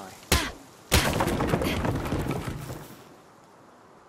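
A wooden wall breaks apart and crashes down with rumbling clatter.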